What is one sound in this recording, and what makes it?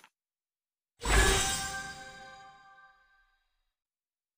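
A bright game reward jingle rings out and fades.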